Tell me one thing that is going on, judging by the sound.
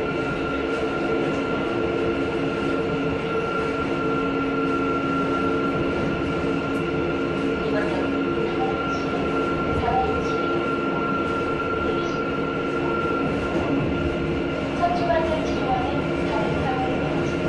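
A subway train rumbles and hums as it runs along the track.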